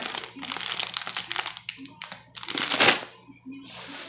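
A plastic wrapper crinkles in a woman's hands.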